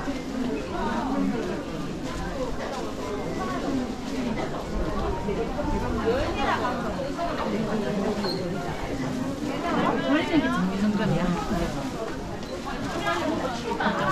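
Footsteps shuffle on a hard floor.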